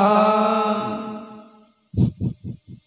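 A man sings into a microphone through a loudspeaker, the sound ringing out and fading.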